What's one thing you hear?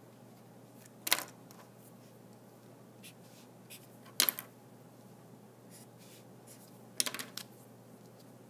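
A marker cap snaps off and on.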